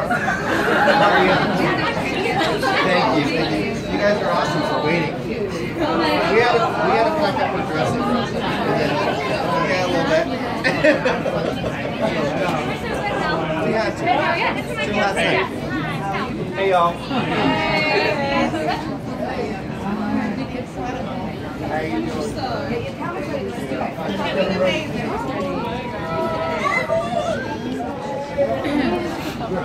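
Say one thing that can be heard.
A crowd of young women chatters and calls out excitedly close by.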